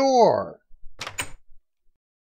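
A wooden door bangs shut.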